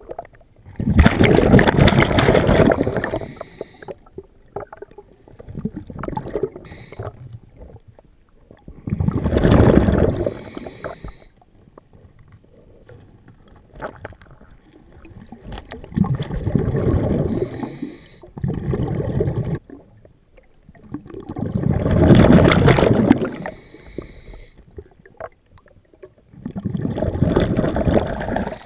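A diver's exhaled air bubbles out underwater in loud, rumbling bursts every few seconds.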